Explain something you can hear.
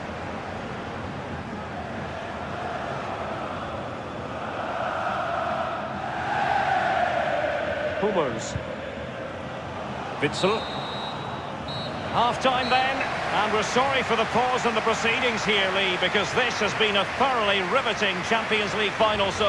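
A large stadium crowd cheers and sings in a wide open space.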